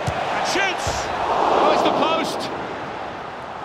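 A crowd cheers louder for a moment.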